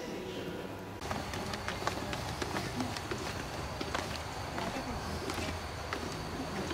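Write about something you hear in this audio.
Footsteps shuffle down stone steps outdoors.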